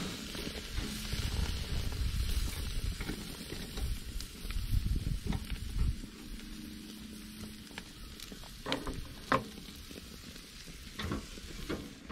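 Metal tongs clink against a grill grate.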